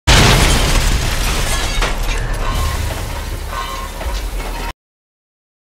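Heavy machinery clanks and rumbles.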